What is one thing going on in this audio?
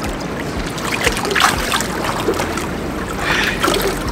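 Water splashes as a man lowers himself into a pool.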